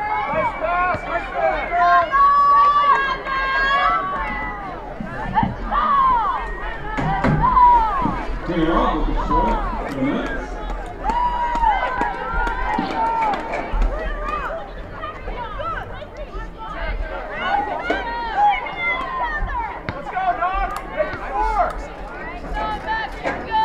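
Spectators shout and cheer at a distance outdoors.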